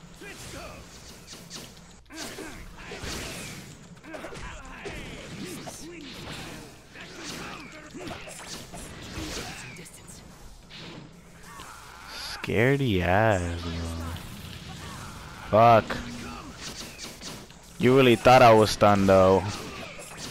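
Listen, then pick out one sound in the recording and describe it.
Energy blasts whoosh and crackle in a game fight.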